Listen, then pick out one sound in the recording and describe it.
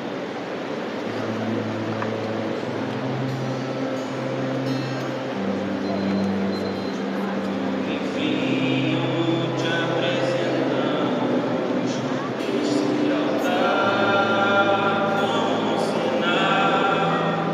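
A crowd sings together slowly in a large echoing hall.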